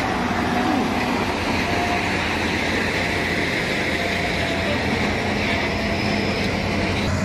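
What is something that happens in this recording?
A heavy truck engine rumbles steadily close by as the truck rolls slowly past.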